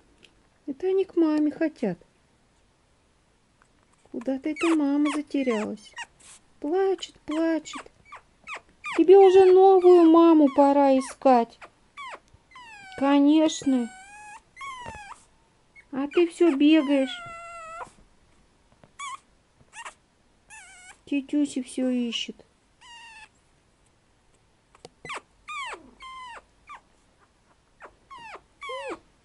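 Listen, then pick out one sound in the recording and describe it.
A puppy yaps and whines in high bursts.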